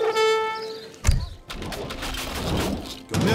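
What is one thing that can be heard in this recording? Soldiers clash with weapons in a battle.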